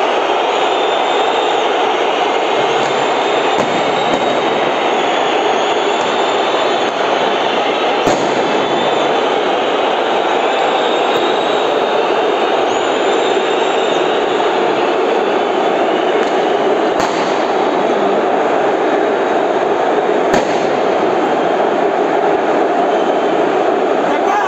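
A large crowd of fans chants and roars loudly in a stadium.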